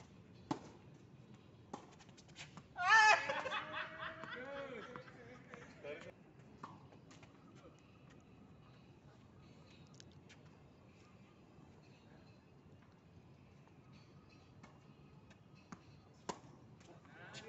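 Tennis rackets strike a ball with sharp pops.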